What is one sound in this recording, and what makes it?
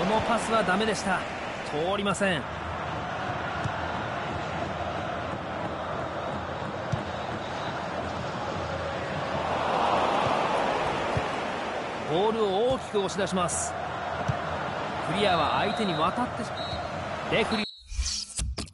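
A large stadium crowd roars and chants steadily, swelling at times.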